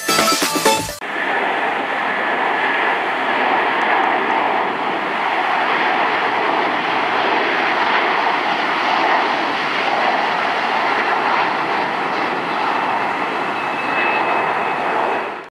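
A jet airliner roars loudly as it takes off and climbs.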